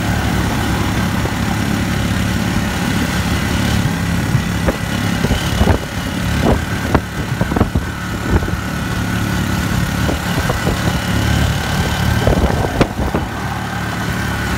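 Wind rushes past an open vehicle.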